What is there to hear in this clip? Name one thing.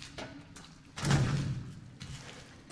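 A heavy metal door rattles against its lock.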